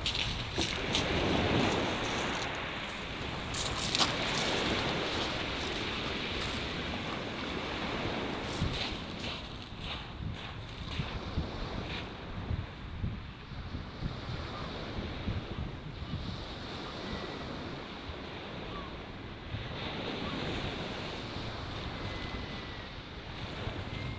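Waves break and wash over a shingle beach.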